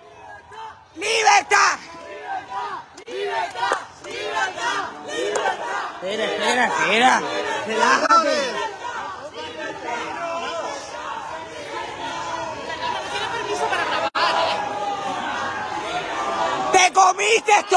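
A crowd of people shout and chant outdoors.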